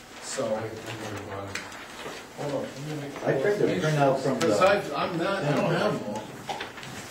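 A man speaks calmly, heard from across the room.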